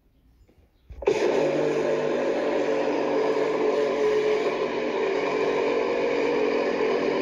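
A blender whirs loudly and steadily, blending a drink.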